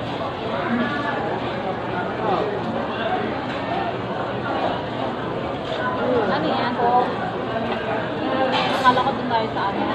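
Metal tongs clink against a pot.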